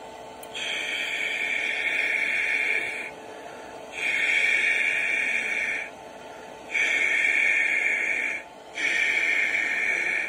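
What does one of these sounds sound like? Radio static hisses in bursts that start and stop abruptly.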